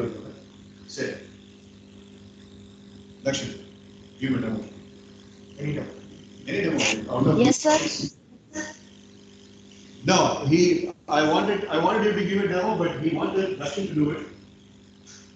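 A man speaks calmly, heard through an online call.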